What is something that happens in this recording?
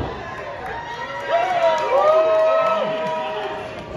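A crowd claps.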